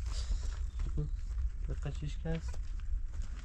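Hens cluck nearby.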